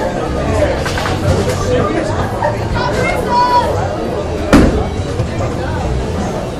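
Bowling balls rumble along wooden lanes in a large echoing hall.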